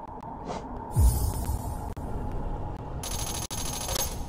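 Coins jingle as a payment is made.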